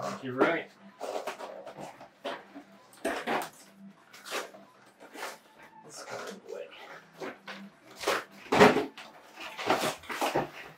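Cardboard packaging rustles and scrapes as it is handled.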